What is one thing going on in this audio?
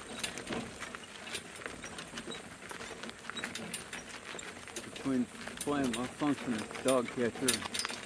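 Hooves clop steadily on a gravel road.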